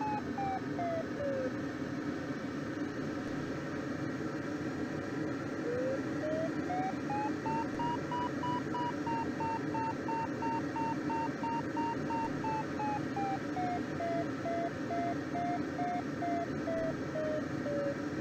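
A glider's variometer beeps in quick pulses that rise and fall in pitch.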